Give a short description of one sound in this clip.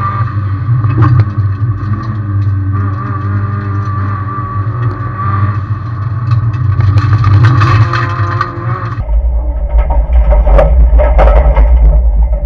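A turbocharged flat-four rally car accelerates hard uphill.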